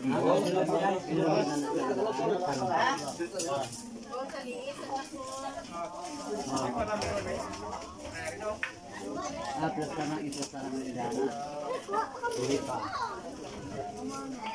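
A crowd of men and women chatters nearby, many voices overlapping.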